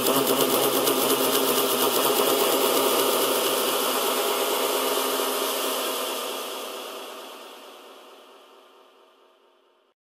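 Electronic dance music plays from a DJ mixer and slowly fades out.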